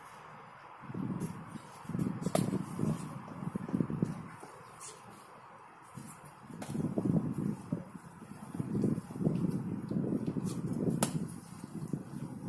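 Fists and kicks thump against a padded striking shield.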